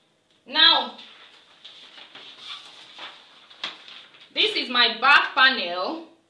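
Paper rustles and slides as a sheet is laid down.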